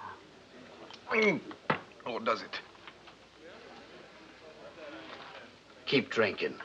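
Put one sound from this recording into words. A second man speaks calmly, close by.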